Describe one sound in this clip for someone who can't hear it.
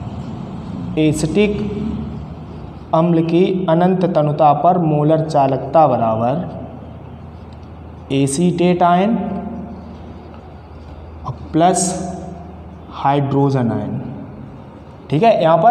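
A man speaks calmly close by, explaining.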